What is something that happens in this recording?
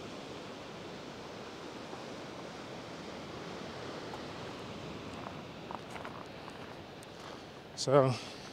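Ocean surf washes steadily against rocks far below.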